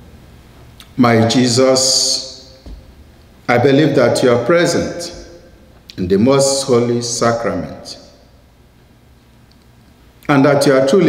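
A man reads a prayer aloud slowly through a microphone, in an echoing room.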